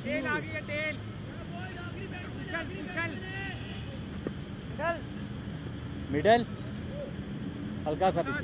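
Men shout loudly across an open field outdoors.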